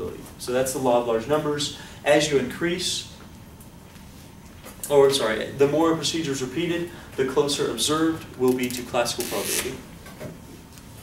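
A man speaks calmly, as if lecturing.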